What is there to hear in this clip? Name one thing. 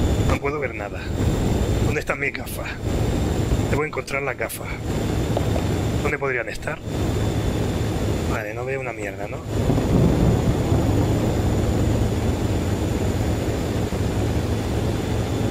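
Heavy rain falls steadily.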